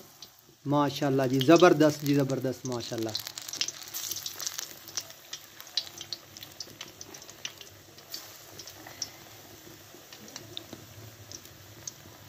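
Batter sizzles and crackles in hot oil.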